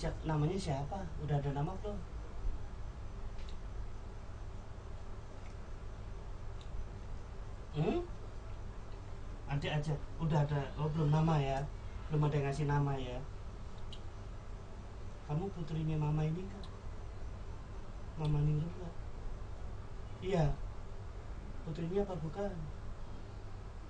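A man speaks close by in a low voice, in short bursts with pauses.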